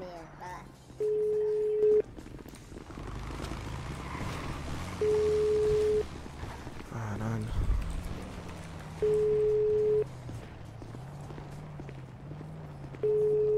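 A phone call rings out with steady, evenly spaced beeps.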